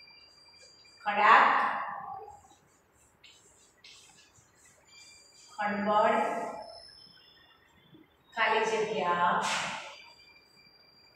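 A woman speaks calmly and clearly in short phrases.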